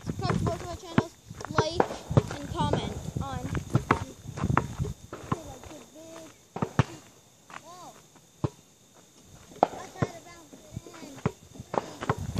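A basketball bounces on hard ground with sharp thuds.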